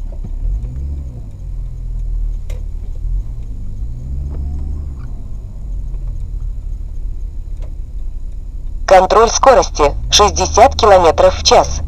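A car engine hums low and steadily from inside the car.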